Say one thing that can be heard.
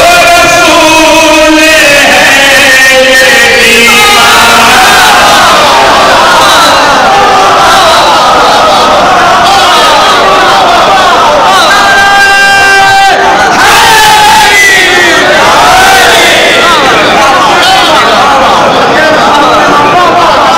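A man chants loudly through a microphone and loudspeakers in a large echoing hall.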